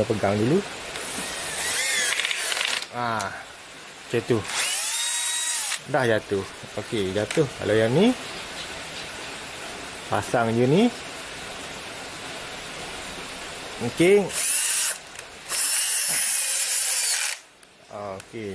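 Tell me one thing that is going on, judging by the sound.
A cordless drill whirs in short bursts, boring into wood.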